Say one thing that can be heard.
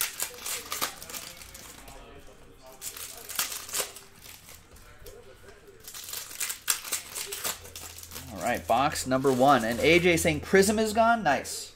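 Cards rustle and flick as a pack is opened and shuffled.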